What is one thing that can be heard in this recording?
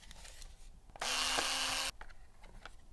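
An electric screwdriver whirs briefly.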